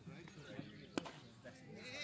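A cricket bat strikes a ball in the distance.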